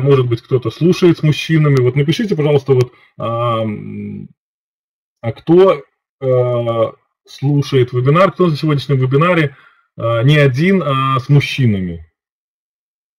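A middle-aged man speaks calmly through an online call microphone, with pauses.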